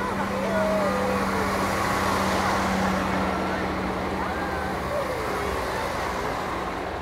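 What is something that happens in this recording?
A crowd cheers and whistles outdoors.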